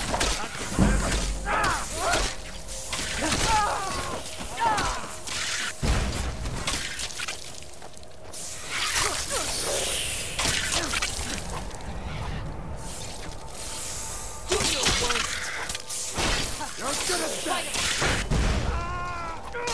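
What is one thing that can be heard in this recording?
Men shout and grunt in battle.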